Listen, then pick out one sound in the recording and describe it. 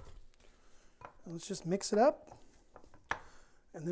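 A spatula scrapes and squeaks against a glass bowl while mixing food.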